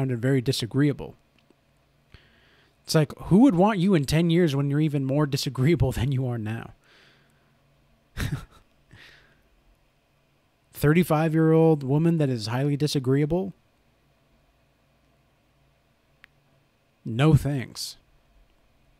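A young man speaks calmly and closely into a microphone, in short bursts with pauses.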